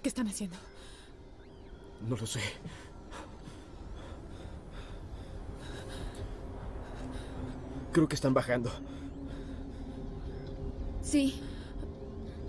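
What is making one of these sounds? A young woman speaks in a frightened, breathless voice nearby.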